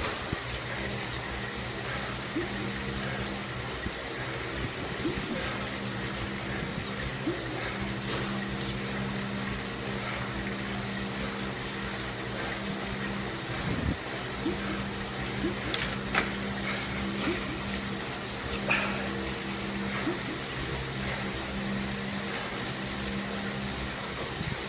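A smart trainer hums steadily under a pedalling cyclist.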